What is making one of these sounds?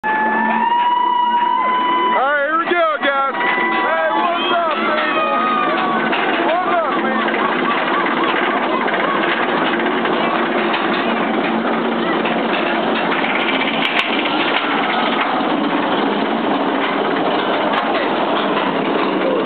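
A roller coaster clanks and rattles steadily as it climbs.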